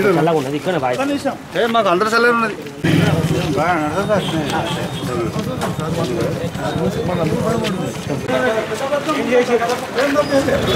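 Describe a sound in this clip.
Men talk with one another in a crowd outdoors.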